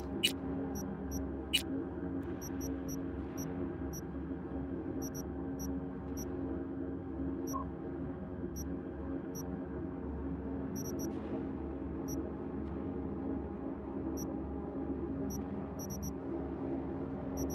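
Short, soft menu clicks tick now and then as selections change.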